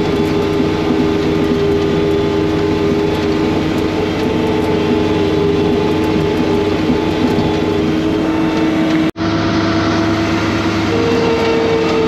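A heavy engine drones steadily up close.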